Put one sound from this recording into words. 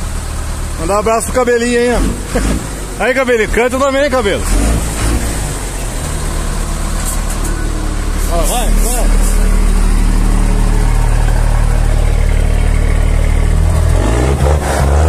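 A diesel truck engine idles with a deep, steady rumble.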